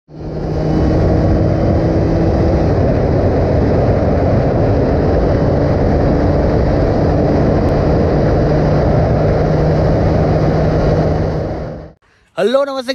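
Wind rushes past loudly.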